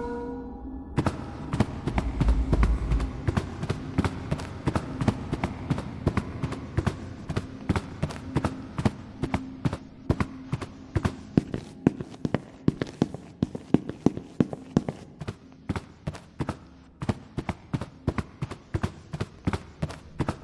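Footsteps walk quickly and steadily across a hard floor.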